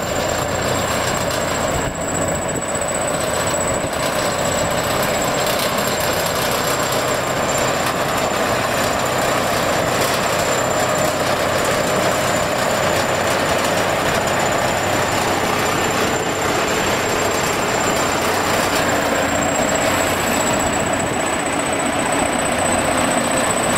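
Soil and clods tumble and crunch as a bulldozer blade pushes them.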